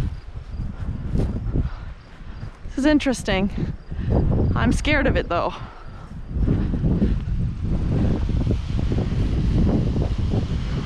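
Wind gusts hard across the microphone outdoors.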